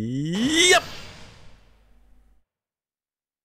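A bright rising chime sounds and rings out.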